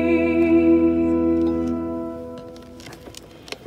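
A young woman sings into a microphone in a large echoing hall.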